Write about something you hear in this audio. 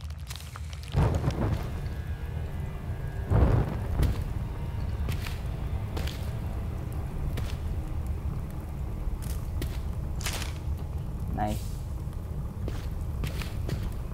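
A torch flame crackles and roars.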